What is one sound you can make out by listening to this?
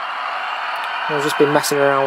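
Model trains whir along their tracks.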